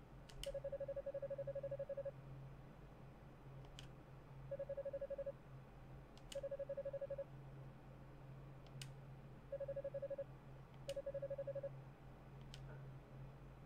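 A short sharp chime sounds each time a new line of text begins.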